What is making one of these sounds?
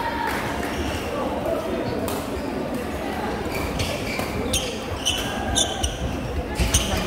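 Badminton rackets strike shuttlecocks with sharp pops.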